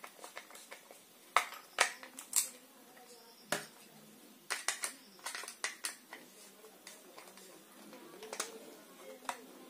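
A screwdriver taps and scrapes against a plastic fitting.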